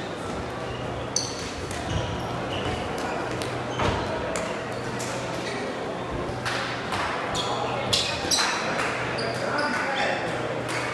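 Badminton rackets smack shuttlecocks in a large echoing hall.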